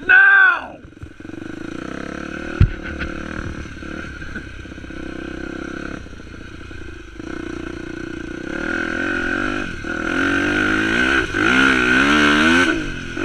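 A dirt bike engine revs and roars up close.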